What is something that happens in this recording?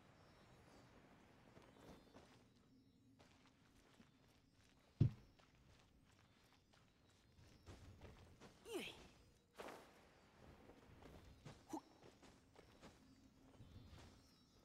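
Sword strikes whoosh and clang.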